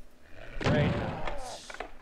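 A punch lands with a dull thud.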